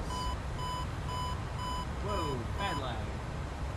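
A cockpit warning tone beeps rapidly.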